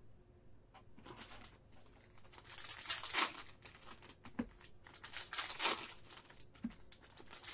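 Plastic card sleeves and wrappers rustle and crinkle in hands.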